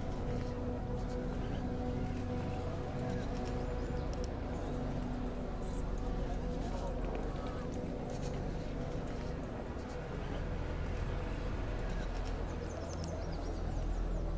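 A horse's hooves clop slowly on stone.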